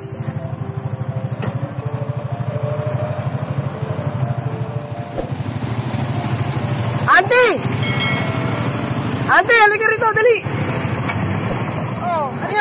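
A motorcycle engine idles with a steady rapid putter.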